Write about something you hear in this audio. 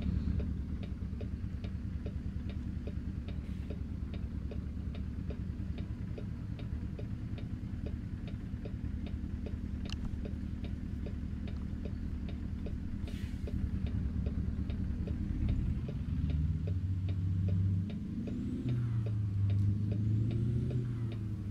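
A heavy truck engine rumbles at idle and then revs up and down.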